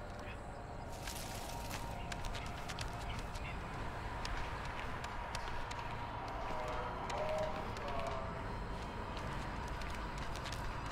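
Footsteps patter quickly over ground and wooden floors.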